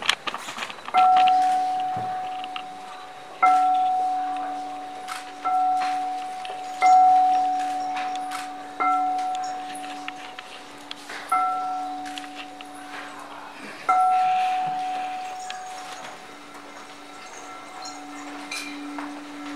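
A crystal singing bowl hums steadily with a low tone as it is rubbed.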